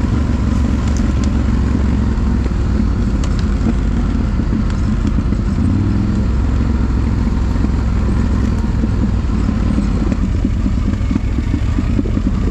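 A quad bike engine rumbles loudly close by.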